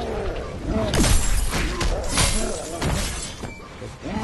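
A body crashes hard onto the floor.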